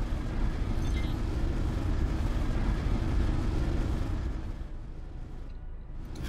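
A spacecraft engine rumbles low and steady, then fades.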